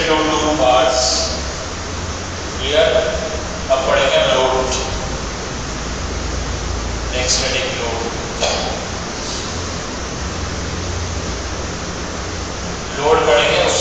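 A man speaks calmly in short phrases with pauses, close by.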